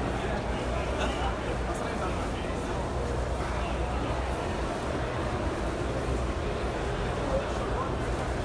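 A crowd of men chatter nearby in a large open space.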